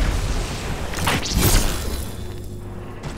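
A sword swings with a sharp electric whoosh.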